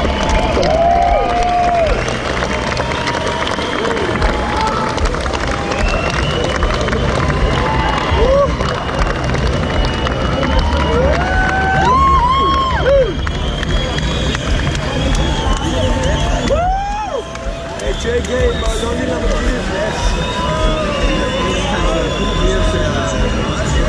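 A man sings into a microphone, heard through loudspeakers.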